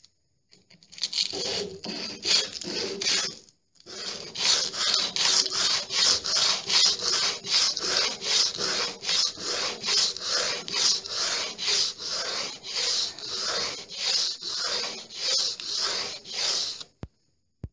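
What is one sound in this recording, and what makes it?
Fingers scrape and rub rapidly against a wall close by.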